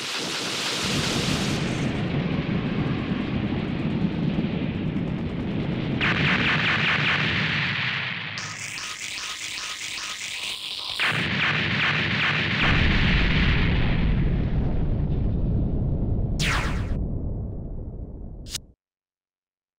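Explosions boom and rumble in rapid succession.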